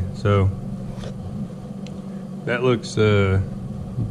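Fingers rub against a foam filter.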